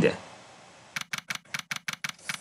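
Rapid electronic blips tick.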